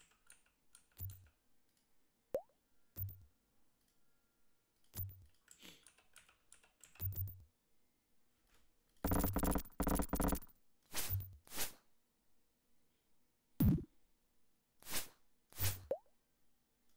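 Footsteps thud at a slow, even pace.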